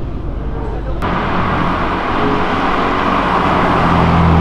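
A car engine roars as the car accelerates past.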